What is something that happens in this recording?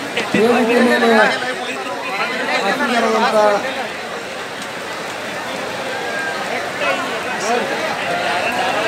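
Men shout angrily in a large crowd.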